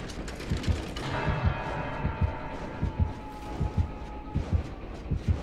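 Objects rattle as hands rummage inside a chest.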